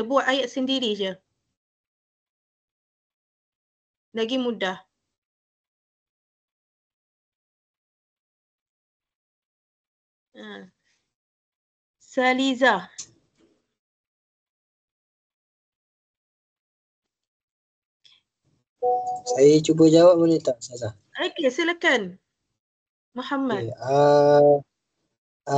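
A young woman speaks in short bursts over an online call, with pauses between.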